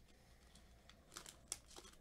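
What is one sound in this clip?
Glossy cards slide and flick against each other.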